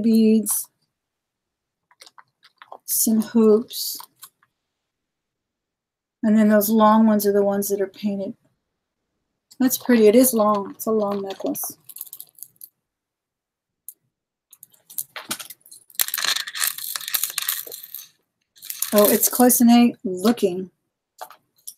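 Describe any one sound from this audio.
A woman speaks with animation, close to a microphone, in short bursts with pauses.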